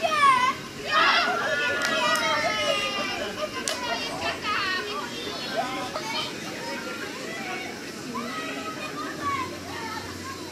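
Children shout and cheer excitedly outdoors.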